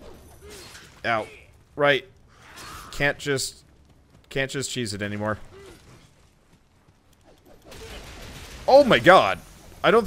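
A sword slashes and clangs in a fight.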